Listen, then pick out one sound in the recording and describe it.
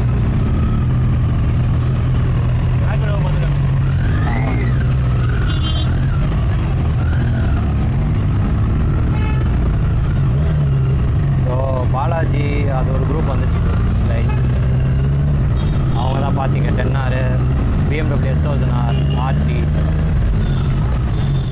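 A motorcycle engine idles and rumbles steadily close by.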